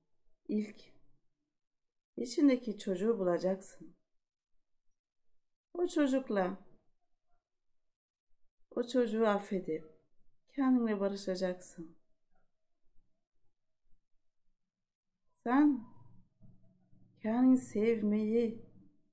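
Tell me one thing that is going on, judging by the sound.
A woman speaks calmly into a close microphone, with pauses between phrases.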